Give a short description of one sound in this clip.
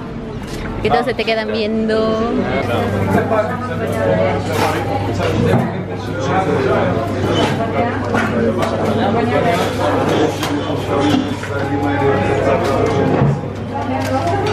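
Several men and women chatter nearby in a busy room.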